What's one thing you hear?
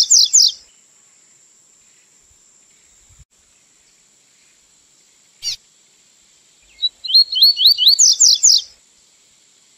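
A small songbird sings bright, quick whistled phrases in short bursts.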